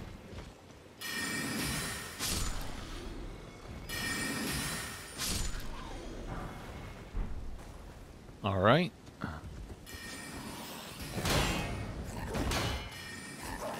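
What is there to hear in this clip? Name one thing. Sword strikes swoosh and clang in combat.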